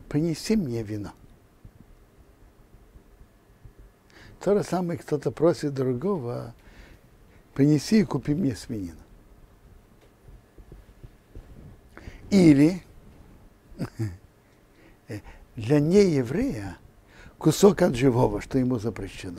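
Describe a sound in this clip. An elderly man speaks calmly and warmly into a microphone, with pauses between phrases.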